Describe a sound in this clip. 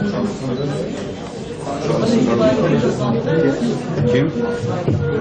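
A man speaks steadily into microphones.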